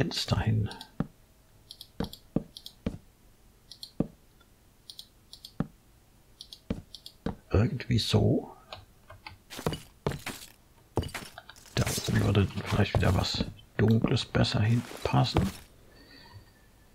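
Wooden blocks are placed with short knocking thuds.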